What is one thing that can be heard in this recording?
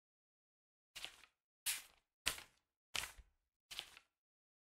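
Pages turn with short soft clicks.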